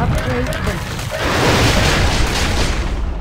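A fiery blast roars loudly.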